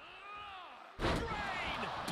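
A body slams down onto a wrestling mat with a heavy thud.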